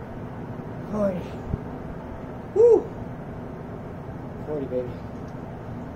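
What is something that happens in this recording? A young man grunts and exhales with effort.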